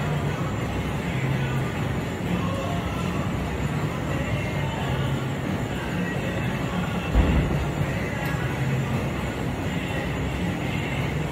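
Footsteps thud rhythmically on a treadmill belt.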